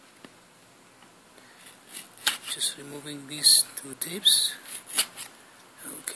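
A knife blade scrapes and slices through tape on a cardboard box.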